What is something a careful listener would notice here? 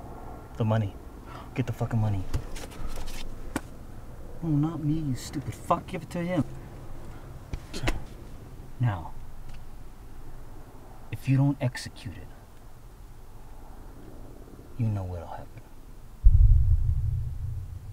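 A young man answers quietly, close by.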